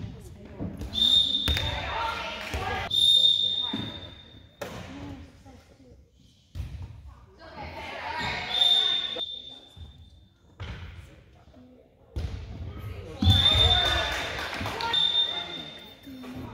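A referee's whistle blows sharply several times in a large echoing gym.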